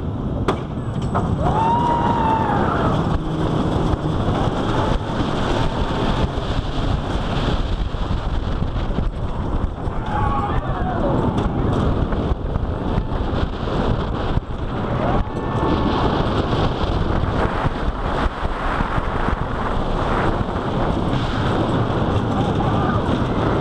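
A roller coaster train rumbles and clatters loudly along a wooden track.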